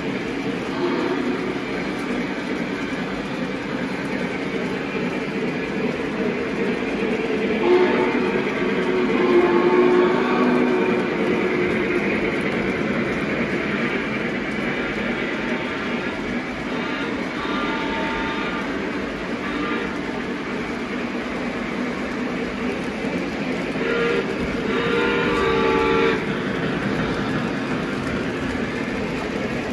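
Model trains rumble and clatter along the tracks.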